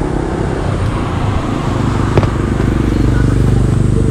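A motor scooter hums along a road.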